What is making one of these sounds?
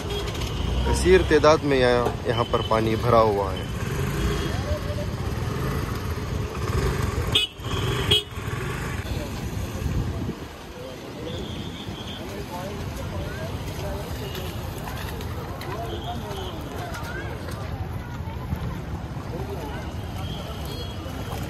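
Feet wade and splash through shallow floodwater.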